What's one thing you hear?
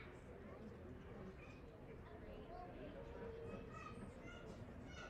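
Young girls chatter with each other outdoors.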